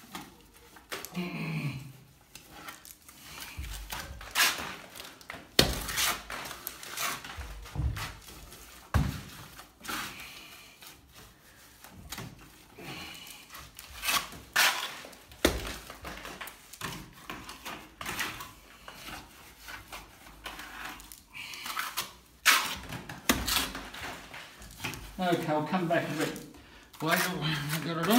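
A trowel scrapes and slaps wet plaster onto a wall.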